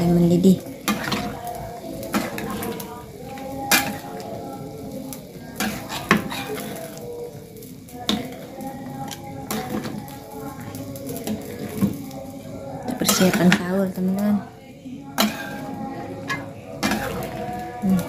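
A metal ladle scrapes and knocks against a metal pan.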